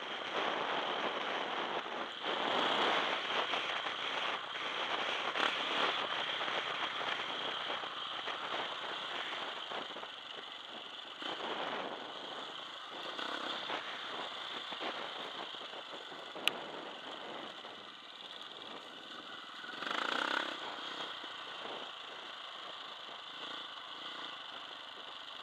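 A dirt bike engine drones loudly up close, revving up and down.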